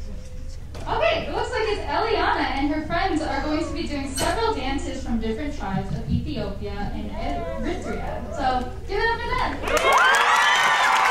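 A young woman speaks through a microphone in a large hall.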